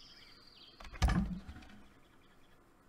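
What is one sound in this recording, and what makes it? A menu opens with a short thud and whoosh.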